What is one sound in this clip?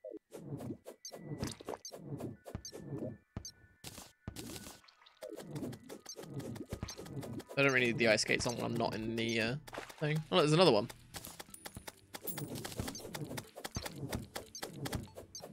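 A sword swishes repeatedly in quick slashes.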